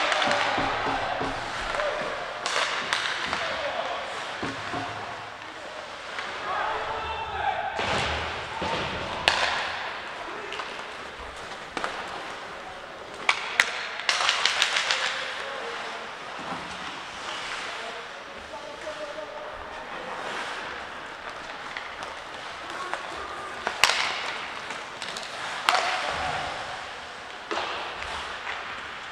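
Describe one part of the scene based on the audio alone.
Skates scrape and hiss on ice in a large echoing arena.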